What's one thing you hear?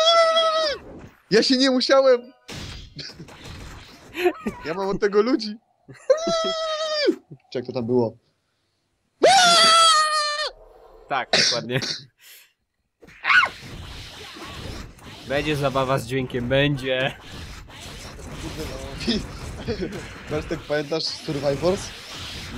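Video game fighting sounds of blows and magic blasts ring out in quick bursts.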